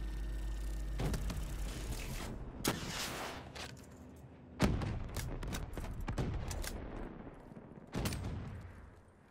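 Gunshots ring out in sharp bursts, echoing briefly.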